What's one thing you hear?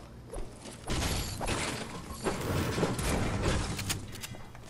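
A pickaxe clangs against a metal shutter.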